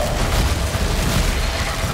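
An energy shield crackles and hums.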